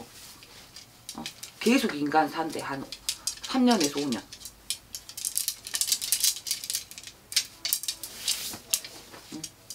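Paper flags rustle and flap as they are shuffled and waved.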